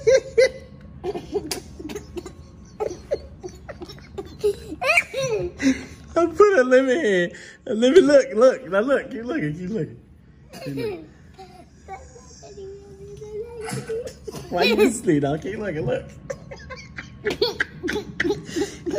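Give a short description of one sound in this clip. A young child talks and laughs excitedly close by.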